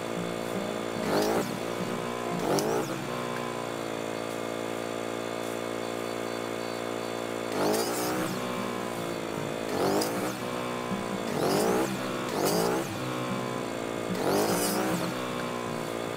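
A small chainsaw revs up in short, loud bursts.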